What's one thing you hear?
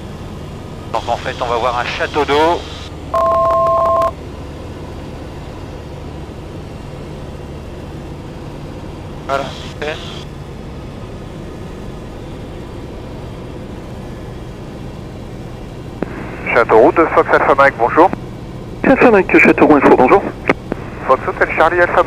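An elderly man speaks calmly through a headset radio.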